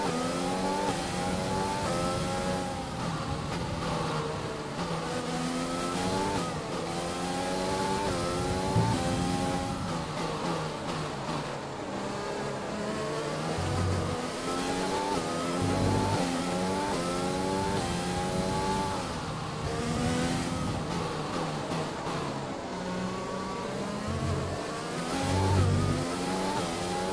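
A racing car engine screams loudly, rising in pitch through the gears and dropping as it slows.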